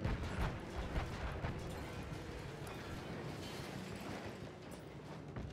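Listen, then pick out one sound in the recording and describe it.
An explosion booms in the distance.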